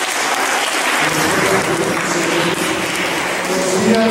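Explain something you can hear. A string ensemble plays in a reverberant hall.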